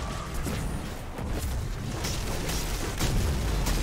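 Energy weapons fire in sharp bursts with heavy booming blasts.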